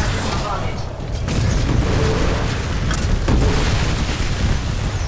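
Heavy gunfire rattles rapidly without pause.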